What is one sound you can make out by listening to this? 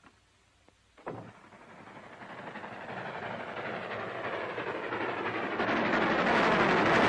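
A large explosion booms, and its roar swells louder.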